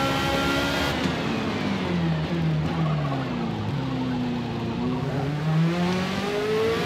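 A racing car engine drops in pitch as the car slows for a corner, then revs back up.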